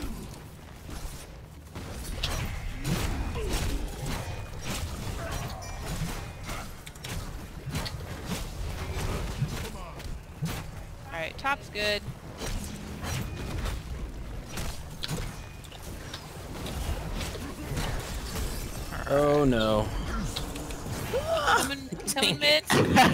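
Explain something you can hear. Fantasy battle sound effects clash, zap and boom without pause.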